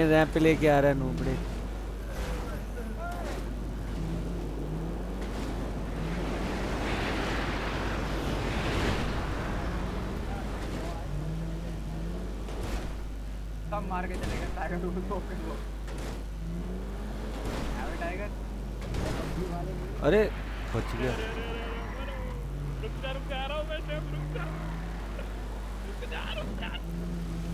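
A truck engine hums and revs steadily.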